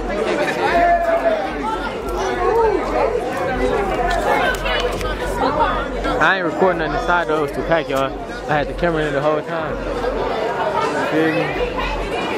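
A crowd of young men talk and shout over each other close by, outdoors.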